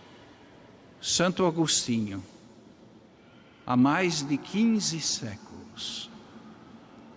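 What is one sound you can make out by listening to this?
An elderly man speaks slowly and solemnly into a microphone in a large echoing hall.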